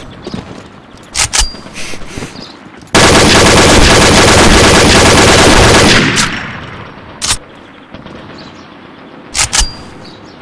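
A weapon clicks and rattles as it is handled.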